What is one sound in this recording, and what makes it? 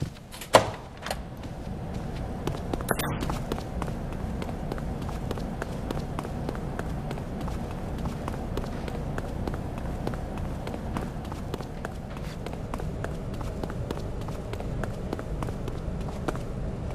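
Footsteps run quickly across a hard floor.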